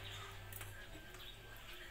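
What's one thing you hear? Liquid pours from a bottle into a bowl.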